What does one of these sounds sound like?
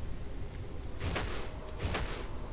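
A body lands with a heavy thud on the ground.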